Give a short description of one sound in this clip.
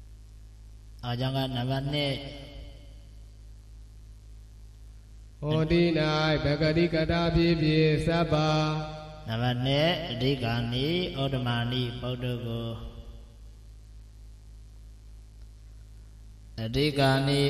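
A young man speaks calmly through a microphone, with pauses.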